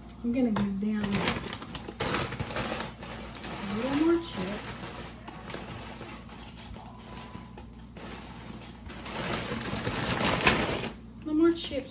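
Dry pasta rattles as it pours out of a crinkling plastic bag.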